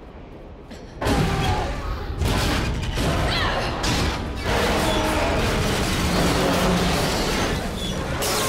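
Monsters snarl and screech loudly.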